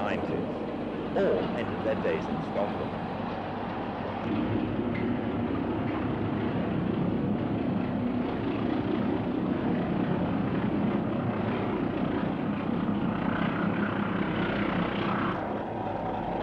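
A diesel train rumbles past close by.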